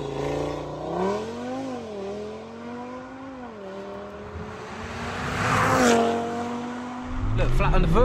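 A car engine revs and drones as a car drives past outdoors.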